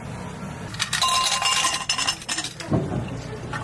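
Ice cubes clatter into a glass.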